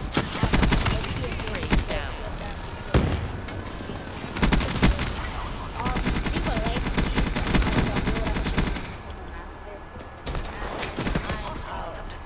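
Rapid automatic gunfire rattles in bursts.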